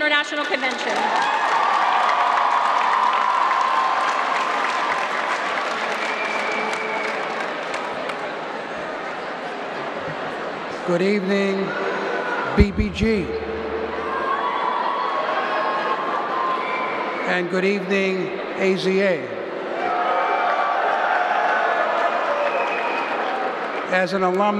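A large crowd cheers and applauds in a big echoing hall.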